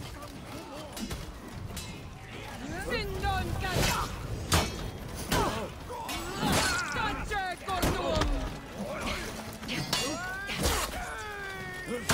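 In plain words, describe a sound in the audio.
Swords clash and clang sharply again and again.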